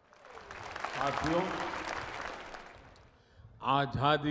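A large crowd cheers and applauds outdoors.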